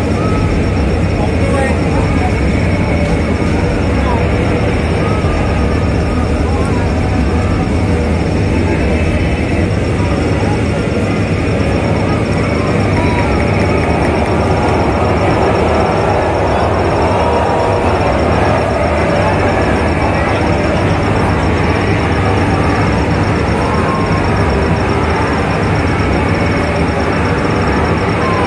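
A large stadium crowd jeers and shouts loudly all around.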